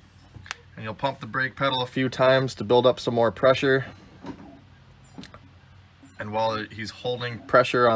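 A wrench clicks against a metal brake fitting.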